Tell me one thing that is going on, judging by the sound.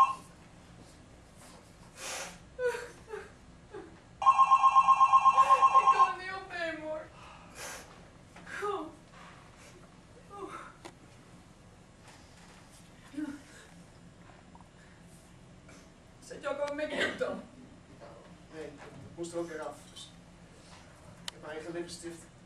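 A woman speaks with feeling in a quiet hall, with long pauses.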